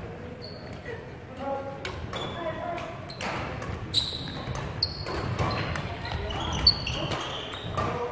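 Voices of several players echo in a large hall.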